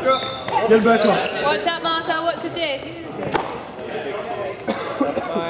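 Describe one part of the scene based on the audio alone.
Young adults call out and shout to each other in a large echoing hall.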